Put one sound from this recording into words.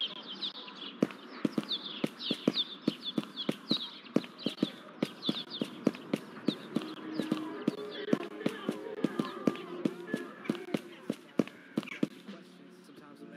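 Footsteps tap steadily on hard pavement.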